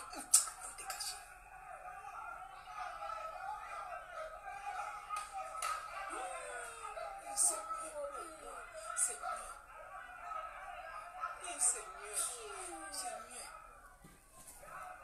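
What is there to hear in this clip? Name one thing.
A crowd of young people shout and scream, heard through a small laptop loudspeaker.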